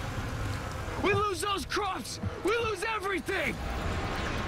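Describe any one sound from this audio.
A young man shouts angrily close by.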